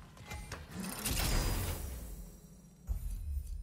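A heavy chest lid creaks open with a rumble.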